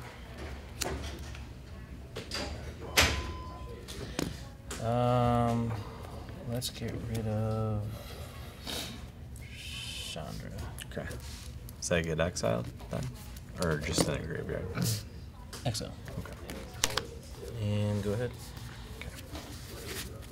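Playing cards tap and slide on a table.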